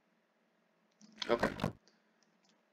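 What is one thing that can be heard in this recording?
A wooden chest lid creaks shut.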